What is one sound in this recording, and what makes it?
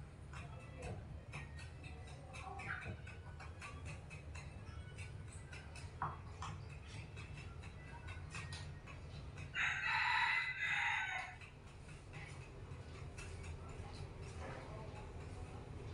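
A knife taps and scrapes on a cutting board.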